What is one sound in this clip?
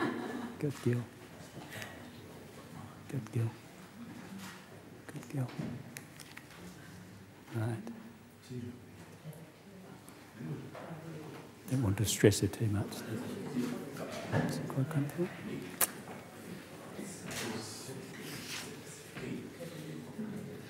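A middle-aged man speaks calmly in a room with a slight echo.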